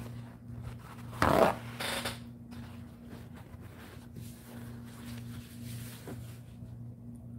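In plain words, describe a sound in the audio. Paper rustles and crinkles in hands close by.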